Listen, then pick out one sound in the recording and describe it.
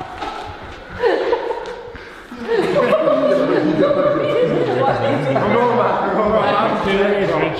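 Young men talk excitedly close by.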